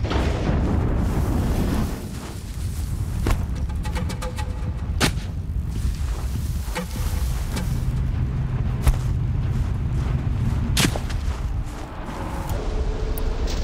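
Footsteps crunch through snow and brush.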